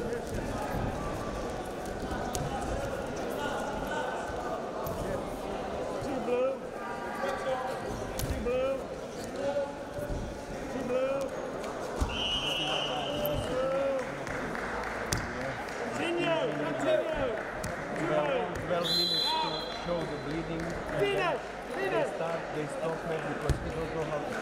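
Wrestlers' bodies thump and scuffle on a padded mat.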